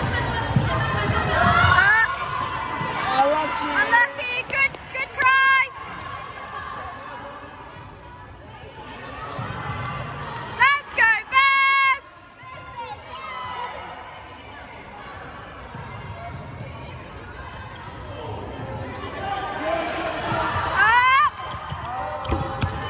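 Young women call out to one another in a large echoing hall.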